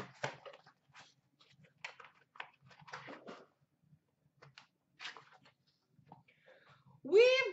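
Cardboard packs rustle and tap as hands sort through a box.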